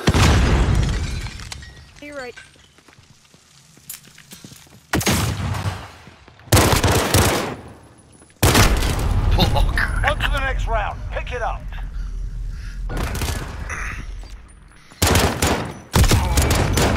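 Pistol shots bang out loudly in bursts, echoing off hard walls.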